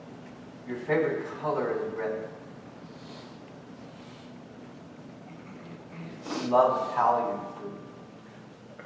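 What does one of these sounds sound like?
A man speaks calmly to an audience in a room with a slight echo.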